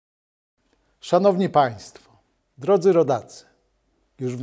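A middle-aged man speaks formally and clearly into a close microphone.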